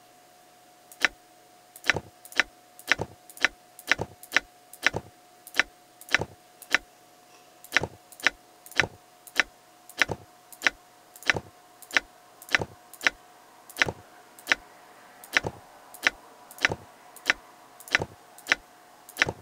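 Coins clink sharply again and again at a quick, even pace.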